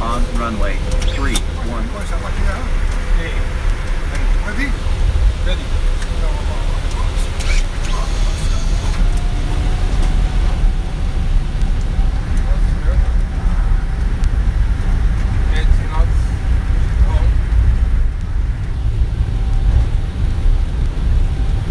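Landing gear rumbles and thumps over the runway.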